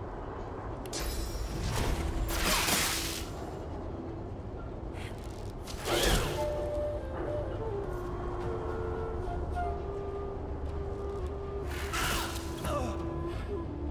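A magical lightning bolt crackles and whooshes several times.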